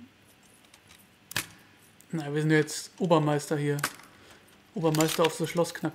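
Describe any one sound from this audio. Metal lock pins click into place one after another.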